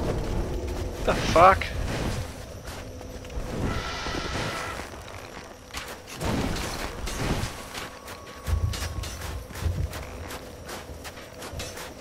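Footsteps crunch and scrape over rubble.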